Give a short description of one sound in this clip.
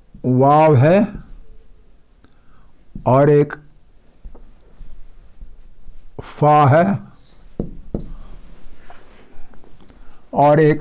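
An elderly man speaks loudly in short drawn-out bursts, close to a microphone.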